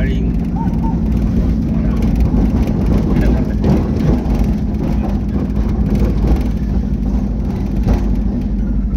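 Tyres roll on asphalt, heard from inside a vehicle.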